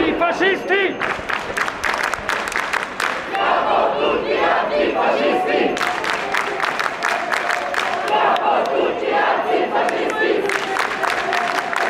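People clap their hands in rhythm.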